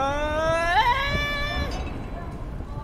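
A young man makes a long, rising exclamation close to a microphone.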